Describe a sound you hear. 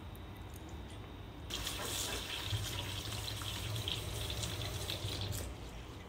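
Water from a tap splashes steadily into a metal bowl of water.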